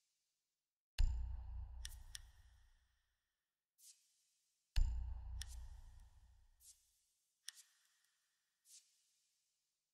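Game menu sounds boom and click as selections change.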